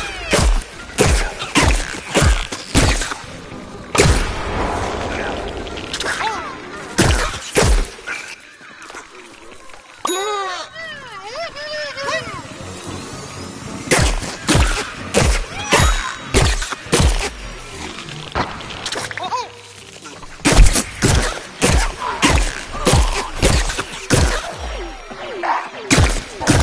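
A game cannon fires repeated sharp blasts.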